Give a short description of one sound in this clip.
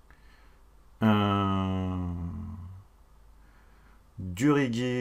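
A young man makes long, drawn-out vocal sounds close to a microphone.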